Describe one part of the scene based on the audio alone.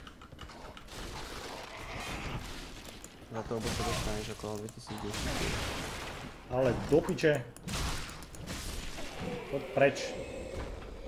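Swords clash and armour clanks in a fight.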